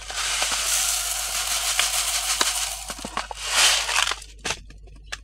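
Seeds pour and rattle into a plastic funnel.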